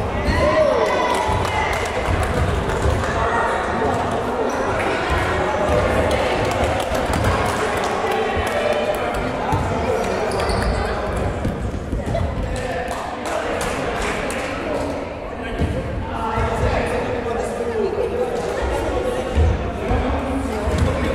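Children shout and chatter loudly in a large echoing hall.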